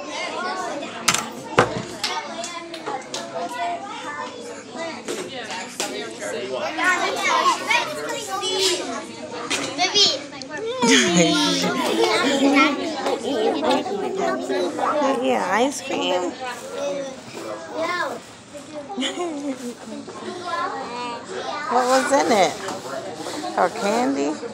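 Many children chatter and talk at once in a busy room.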